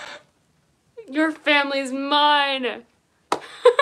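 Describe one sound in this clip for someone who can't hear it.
A young person sings a long, wavering note close by.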